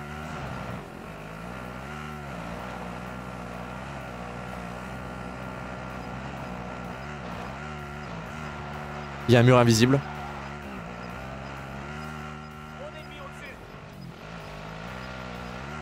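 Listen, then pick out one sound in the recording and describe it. An engine drones steadily as a quad bike drives over rough ground.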